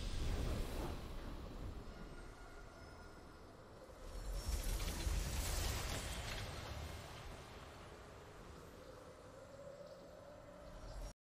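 A triumphant game fanfare plays over swelling music.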